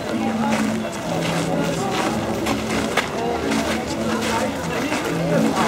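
A crowd of men and women chatters nearby outdoors.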